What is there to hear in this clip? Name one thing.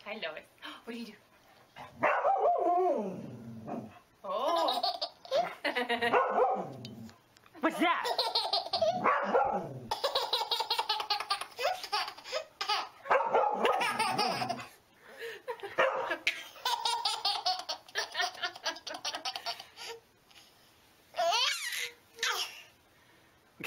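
A baby belly laughs.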